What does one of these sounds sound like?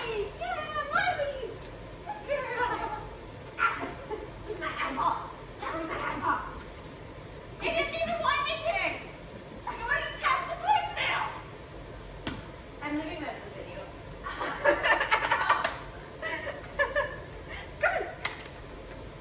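A young woman talks to a dog in an animated, high-pitched voice.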